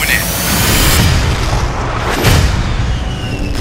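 A jet roars past overhead.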